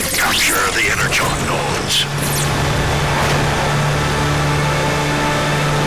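A video game car engine hums as the car drives.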